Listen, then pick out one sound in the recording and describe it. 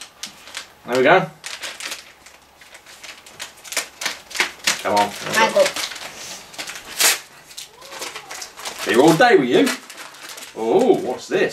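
Paper crinkles and tears as an envelope is opened.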